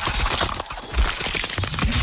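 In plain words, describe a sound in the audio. Flesh splatters wetly with a burst of gore.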